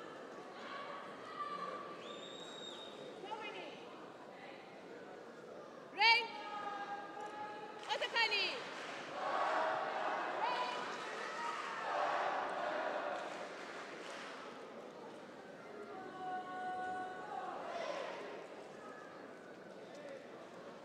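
A crowd murmurs in the background of a large hall.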